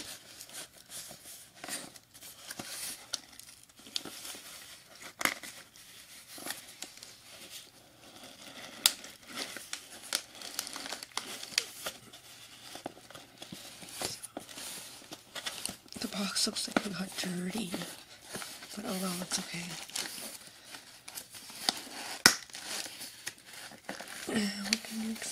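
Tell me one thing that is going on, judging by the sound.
Hands handle a cardboard box, which rustles and scrapes.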